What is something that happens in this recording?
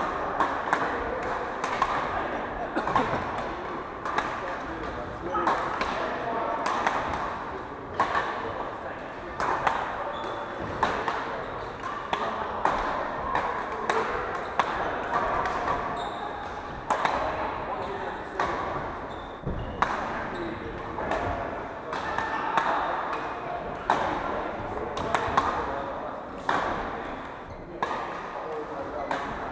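Rackets strike shuttlecocks with sharp pops in a large echoing hall.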